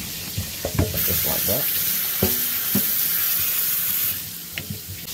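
Water runs from a tap and splashes into a bowl.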